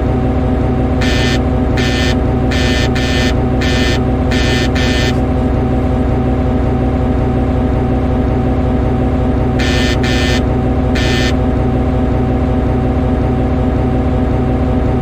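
A diesel locomotive engine idles with a steady low rumble.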